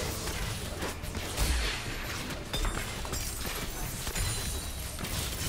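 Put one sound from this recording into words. Game characters fight with bursts of magic blasts and clashing hits.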